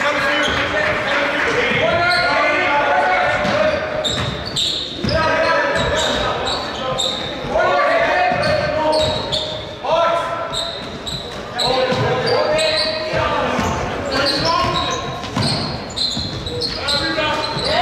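Young men shout to each other in an echoing gym.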